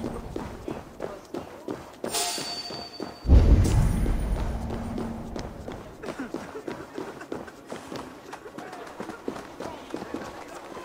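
Footsteps tread steadily on a stone path.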